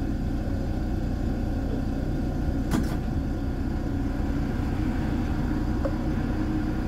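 A bus engine hums close by as the bus passes.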